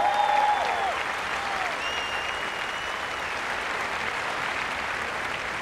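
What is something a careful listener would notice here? A large crowd cheers loudly outdoors.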